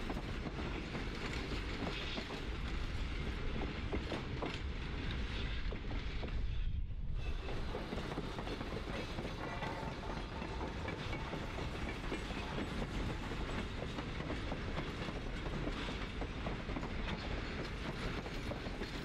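A freight train rumbles steadily in the distance.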